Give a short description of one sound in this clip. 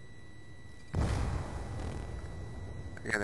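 Gunshots fire in a short burst.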